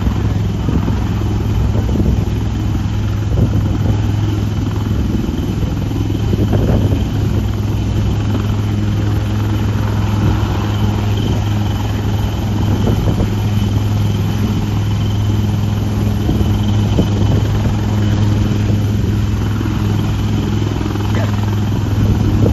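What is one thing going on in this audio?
Strong wind from the rotor rushes outdoors.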